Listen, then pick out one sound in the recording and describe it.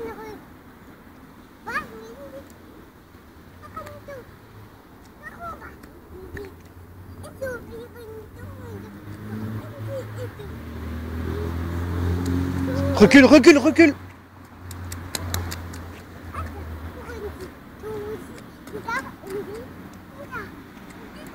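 A young child babbles and squeals nearby.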